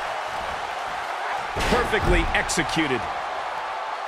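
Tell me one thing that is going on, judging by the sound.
A body slams down onto a wrestling ring mat with a heavy thud.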